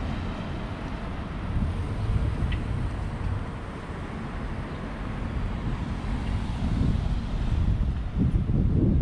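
A car drives past close by on the road.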